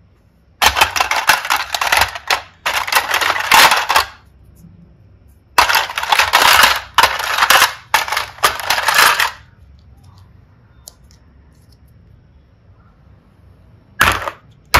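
Plastic toys clatter and rattle against each other.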